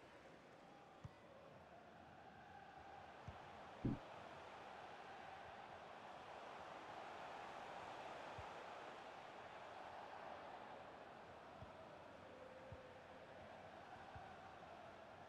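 A football is kicked with dull thuds now and then.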